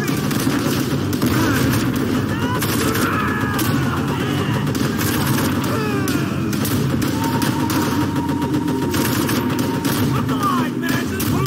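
A heavy machine gun fires in rapid, rattling bursts.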